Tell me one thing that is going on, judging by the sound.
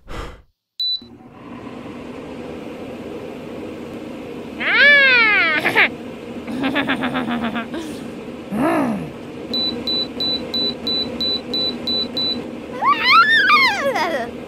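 An air conditioner hums and blows steadily.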